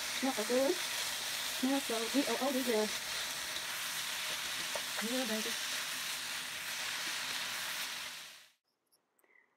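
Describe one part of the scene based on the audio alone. Vegetables sizzle steadily in a hot pan.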